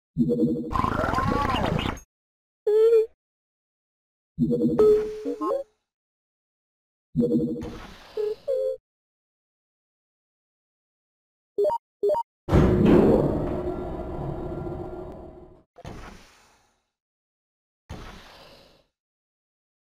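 Short electronic game jingles and chimes play in bursts.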